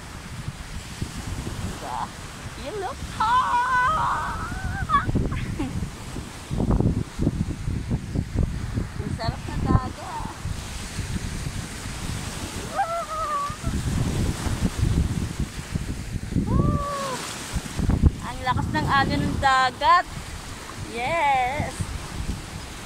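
Waves wash onto the shore.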